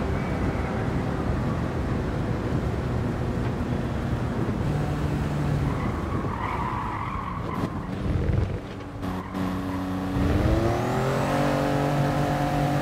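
A race car engine drones and revs steadily.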